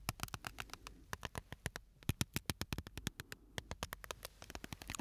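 Fingers tap and click rapidly on a small object close to a microphone.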